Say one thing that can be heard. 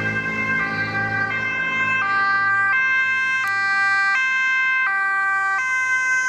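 A vehicle engine hums as it drives closer.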